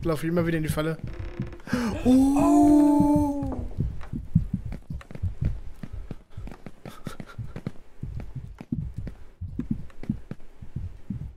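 Footsteps thud steadily.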